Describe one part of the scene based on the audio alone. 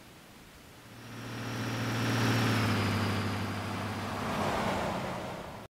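A car engine revs up and settles back.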